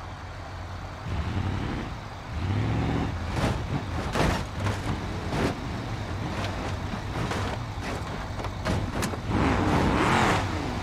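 A car engine revs up and down.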